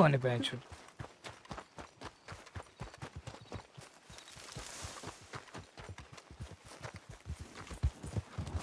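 Footsteps thud quickly on dirt as a man runs.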